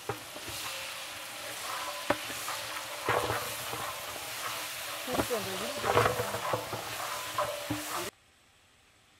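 A wooden paddle stirs and scrapes vegetables in a metal pot.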